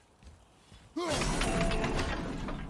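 An axe strikes metal with a loud ringing clang.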